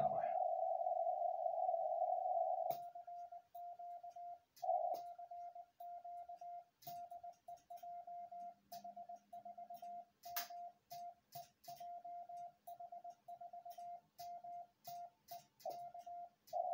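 A Morse code tone beeps in short and long bursts.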